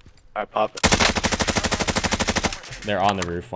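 A rifle fires rapidly in quick bursts.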